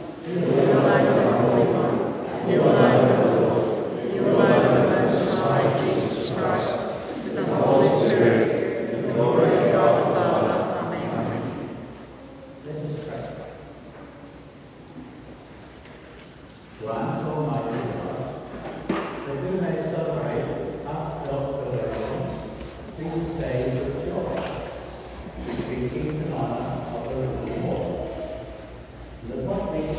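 A congregation sings together in a large, echoing hall.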